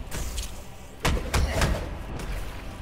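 Video game explosions boom and crackle.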